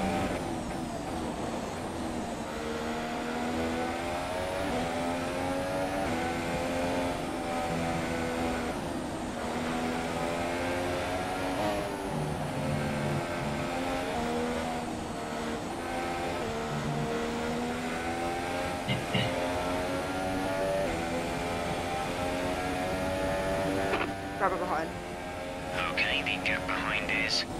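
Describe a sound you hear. A racing car engine screams, its pitch rising and falling as it shifts gears.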